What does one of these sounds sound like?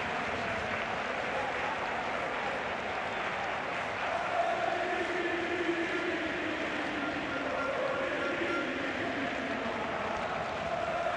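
A crowd of fans chants and sings together.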